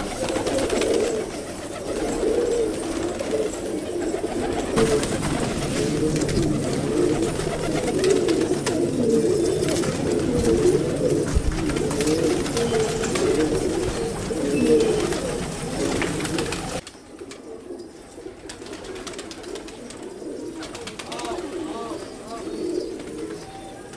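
Pigeons coo in low, throaty bursts close by.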